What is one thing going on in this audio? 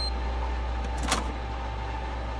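A lock clicks open.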